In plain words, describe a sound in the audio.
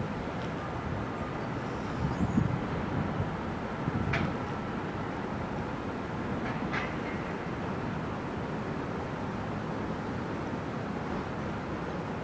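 A man gulps a drink from a bottle.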